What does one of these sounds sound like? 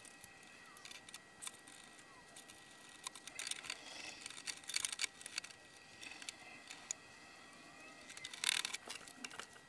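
Hands handle cables and metal parts with small clicks and rustles.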